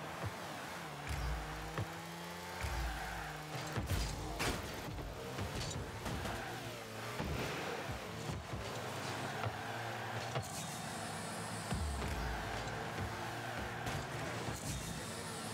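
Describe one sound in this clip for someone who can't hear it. A car boosts with a rushing whoosh.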